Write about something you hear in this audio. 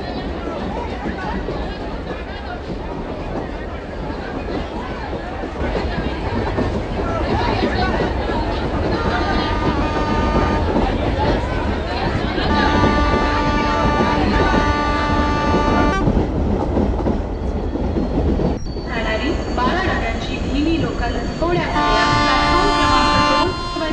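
A train rumbles along rails and slowly brakes to a stop.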